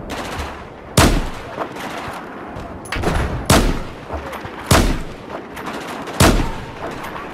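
A sniper rifle fires single sharp shots.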